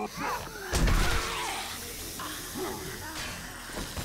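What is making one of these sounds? A zombie groans.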